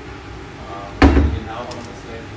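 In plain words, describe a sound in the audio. A cabinet door bangs shut.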